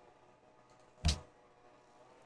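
A game menu opens with a short click.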